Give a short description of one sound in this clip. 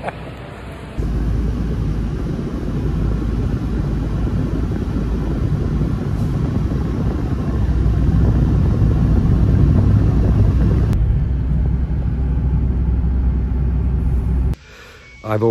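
A car engine and tyres rumble steadily from inside a moving car.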